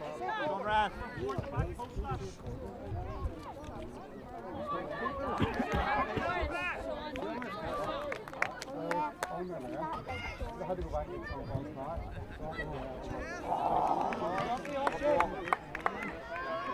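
A crowd of men and women chatters and calls out close by, outdoors.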